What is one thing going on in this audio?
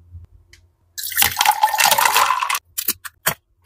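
Coffee pours into a plastic cup.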